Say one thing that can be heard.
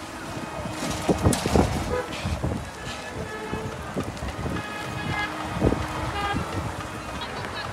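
Traffic rumbles on a road outdoors.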